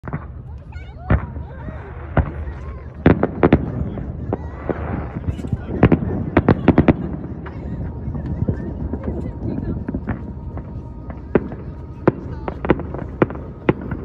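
Fireworks boom and crackle in the distance outdoors.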